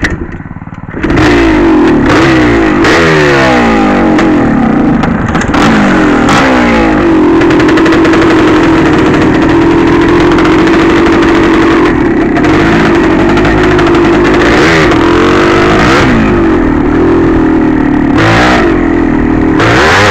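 A dirt bike engine roars and revs hard as the bike rides off.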